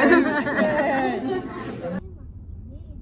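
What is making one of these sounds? People chatter and a woman talks close by.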